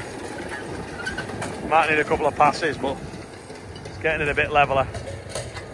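A cultivator churns and crunches through dry soil.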